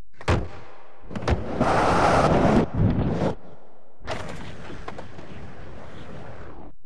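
Skateboard wheels roll loudly over a wooden ramp.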